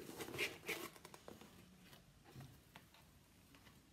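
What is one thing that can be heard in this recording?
A cardboard box lid opens with a scrape.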